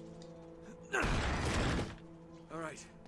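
A heavy wooden door swings open.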